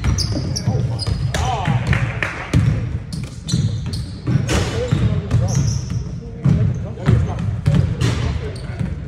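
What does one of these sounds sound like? A basketball bounces on a hard wooden floor, echoing in a large hall.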